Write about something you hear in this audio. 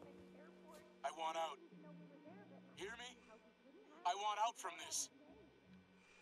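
An older man speaks urgently and angrily, close by.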